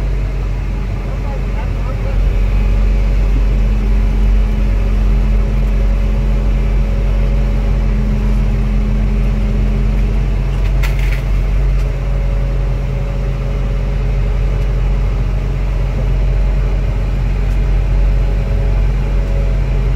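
A heavy machine's diesel engine rumbles steadily from inside its cab.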